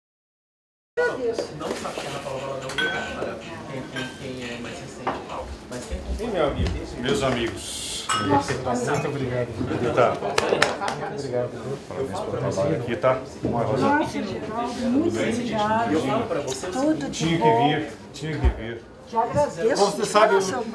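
A crowd of men and women chatter close by in a busy room.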